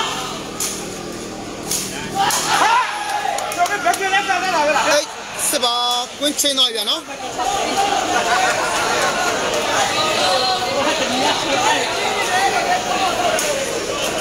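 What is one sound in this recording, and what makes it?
A large crowd of spectators chatters and shouts.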